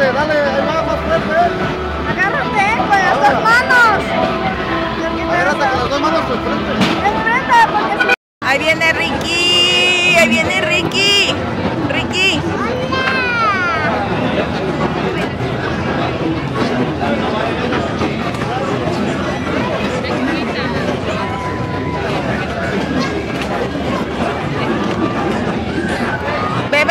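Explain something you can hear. Lively fairground music plays loudly.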